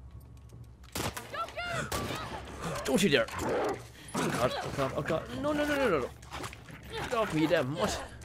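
A dog snarls and growls fiercely.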